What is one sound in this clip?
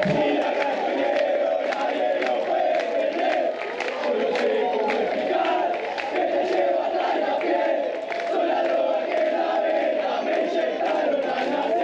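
Fans clap their hands in rhythm.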